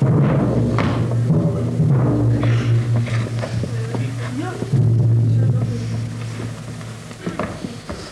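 A group of voices sings together on a stage, heard from a distance in a large hall.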